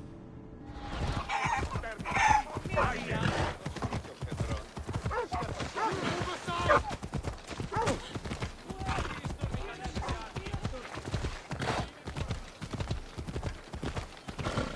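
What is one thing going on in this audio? A horse's hooves clop steadily on stone.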